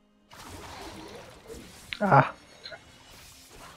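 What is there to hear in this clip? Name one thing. Magic spells whoosh and crackle in a fantasy battle.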